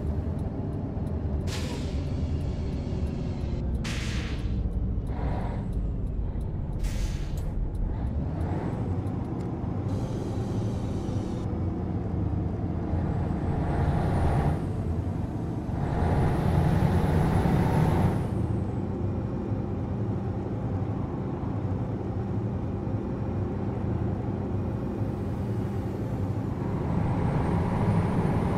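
Tyres roll and hum on the road.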